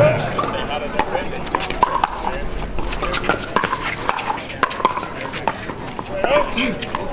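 Paddles pop against a plastic ball in quick rallies.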